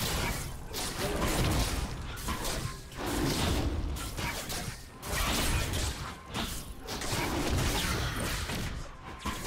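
Game fighting effects clash and whoosh.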